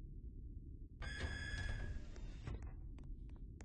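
A sliding door opens with a short mechanical whir.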